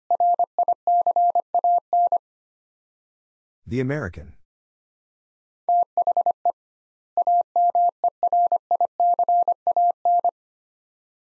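A telegraph key taps out Morse code in quick, steady beeps.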